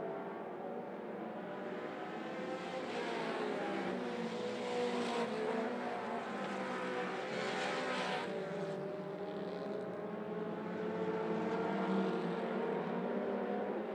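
Race car engines roar loudly, rising and falling in pitch as cars pass.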